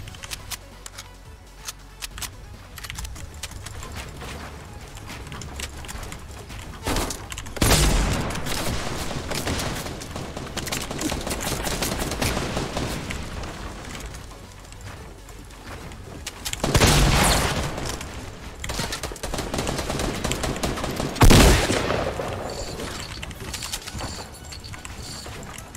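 Wooden walls and ramps clatter quickly as they are built in a video game.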